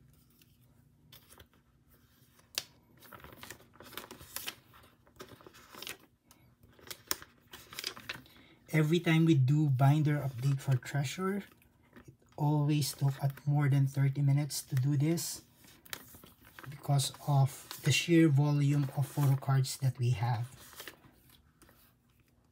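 Plastic sleeves crinkle and rustle as cards are slid in and out.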